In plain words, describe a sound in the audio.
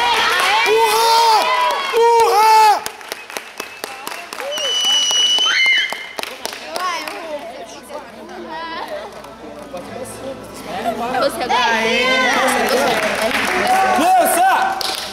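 Several people shout and cheer loudly nearby, outdoors.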